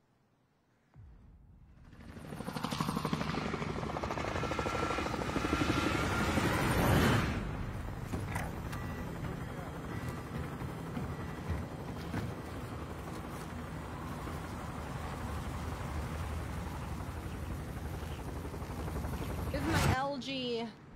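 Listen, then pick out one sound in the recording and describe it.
Helicopter rotors thump loudly and steadily.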